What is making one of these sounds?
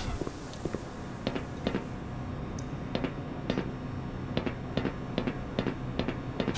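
Footsteps clang steadily on a metal walkway.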